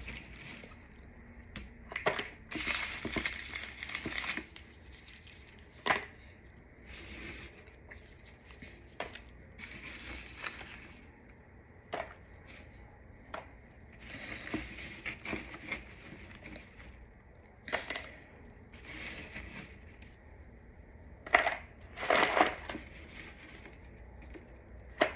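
Gloved hands crumble and crunch chalky pieces.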